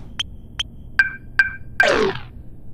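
A buzzer sounds as the lottery machine stops on a loss.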